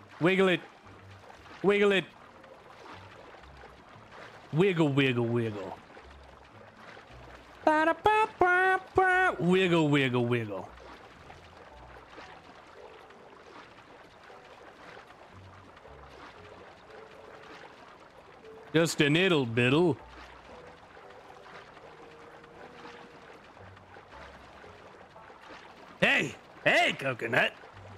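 Water splashes softly with swimming strokes.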